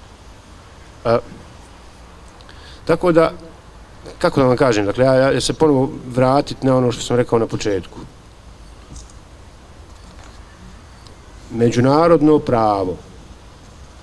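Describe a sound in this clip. A man speaks into a microphone in bursts, with pauses between phrases.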